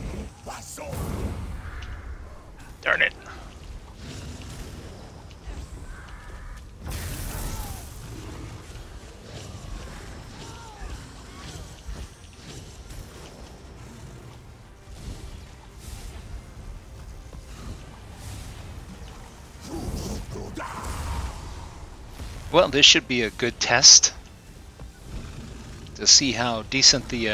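Magic blasts boom and burst.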